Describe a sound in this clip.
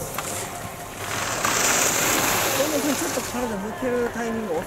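Skis scrape and hiss across hard snow.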